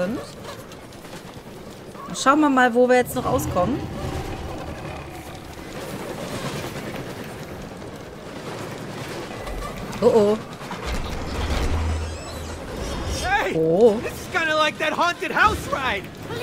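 A cart rumbles along a wooden track.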